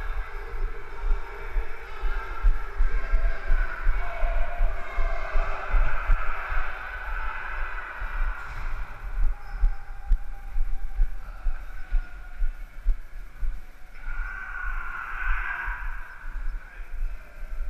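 Footsteps thud quickly on concrete stairs.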